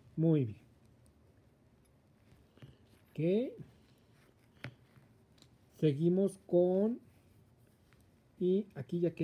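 Knitting needles click softly against each other.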